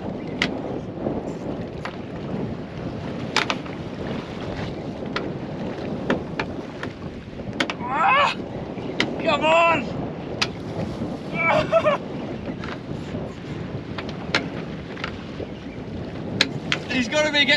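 A fishing reel clicks as line is drawn.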